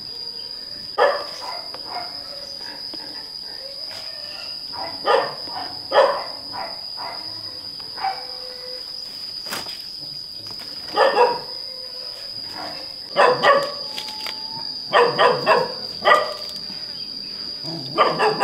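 Leaves rustle and branches shake.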